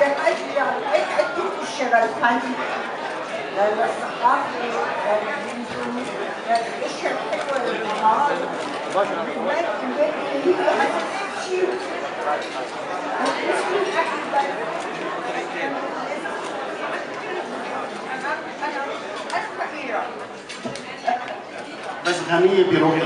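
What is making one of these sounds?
An elderly woman speaks into a microphone through loudspeakers in an echoing hall.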